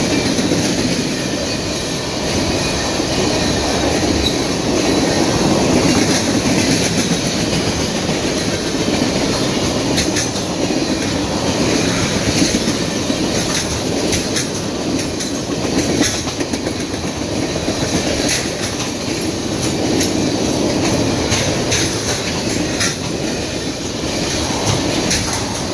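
Steel wheels clack and squeal on the rails.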